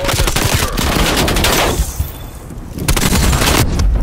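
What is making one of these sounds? Rapid rifle gunfire rattles in bursts.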